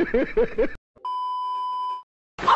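A steady high beep of a television test tone sounds.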